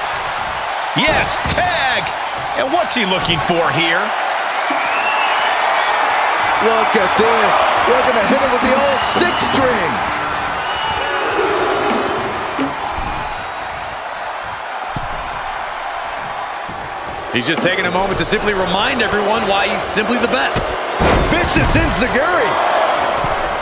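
Heavy thuds of bodies slam down on a wrestling ring.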